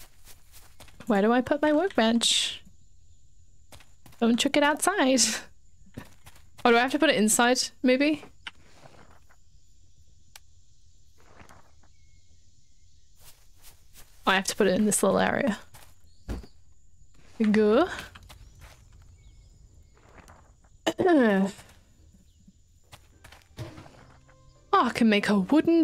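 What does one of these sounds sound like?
A young woman talks casually into a close microphone, in short bursts.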